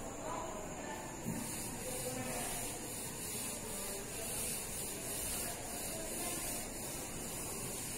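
A duster rubs softly across a chalkboard.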